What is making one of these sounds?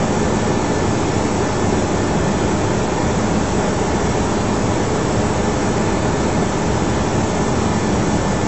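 Jet engines roar steadily from inside an aircraft cockpit.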